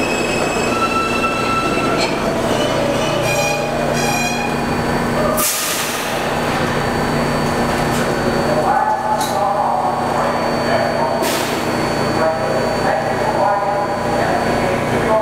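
A subway train rolls slowly along the track, its wheels rumbling and squealing.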